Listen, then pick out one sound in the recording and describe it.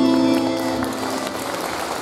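Music plays through loudspeakers in a large hall and stops.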